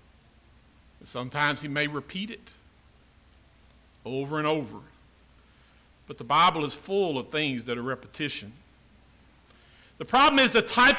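An elderly man speaks slowly and deliberately into a microphone, with pauses.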